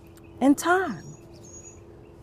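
A middle-aged woman speaks briefly and warmly, close by.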